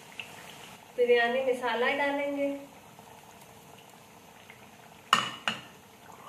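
Ground spices tip from a dish into a pan.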